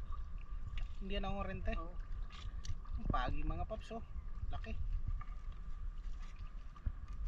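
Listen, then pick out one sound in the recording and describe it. A wet fishing net rustles and drips as it is hauled in by hand.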